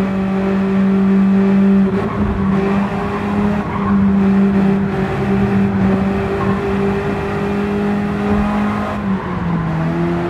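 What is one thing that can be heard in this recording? A small sports car engine hums steadily at high revs, dipping briefly near the end.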